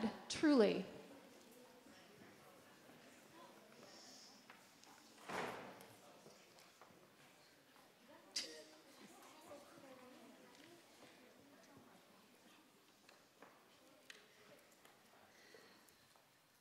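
Children talk quietly among themselves.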